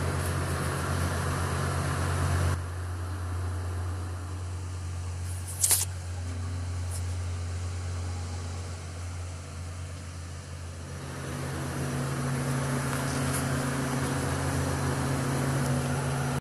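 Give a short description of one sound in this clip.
A crane's engine hums steadily close by.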